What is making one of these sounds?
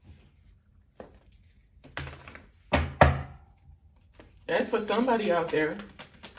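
Cards are shuffled by hand with soft riffling clicks.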